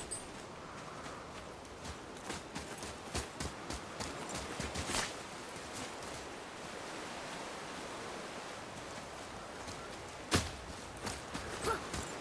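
A steady wind rushes outdoors.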